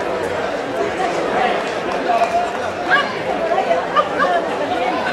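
Men shout excitedly as bulls run along the street.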